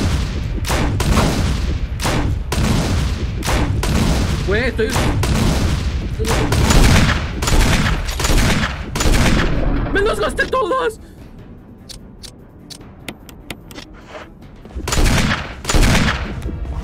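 Gunshots bang loudly in quick bursts.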